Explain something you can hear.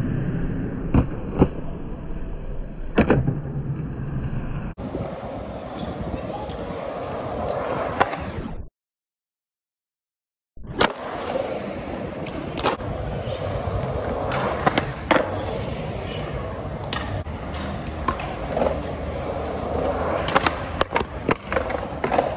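A skateboard clacks sharply as it lands and hits the concrete.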